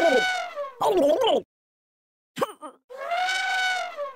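Water sprays in a hard jet.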